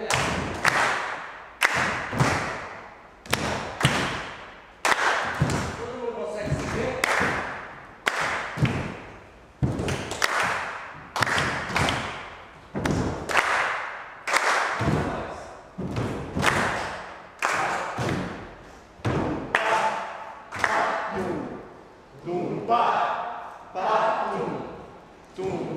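A group of people claps in a slow, steady rhythm in an echoing room.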